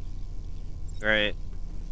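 A young woman makes a short, high vocal sound close to a microphone.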